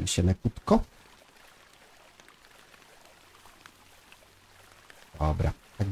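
A paddle splashes softly in calm water.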